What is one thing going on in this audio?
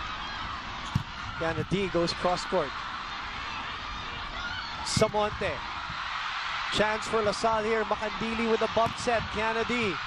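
A volleyball is struck with sharp thumps.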